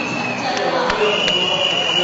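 A young man speaks through a microphone over loudspeakers.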